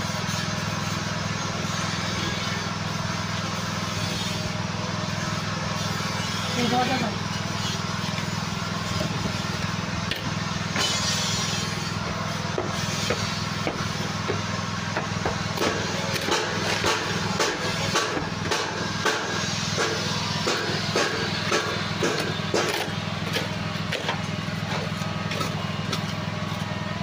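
A trowel scrapes and scoops loose soil.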